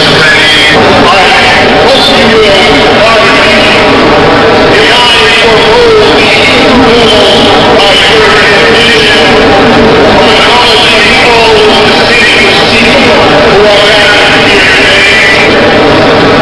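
An elderly man speaks forcefully through a loudspeaker in a large echoing space.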